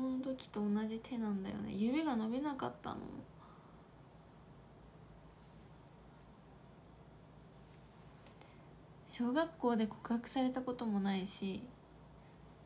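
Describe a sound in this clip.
A young woman speaks close to a microphone with animation, in a high, sing-song voice.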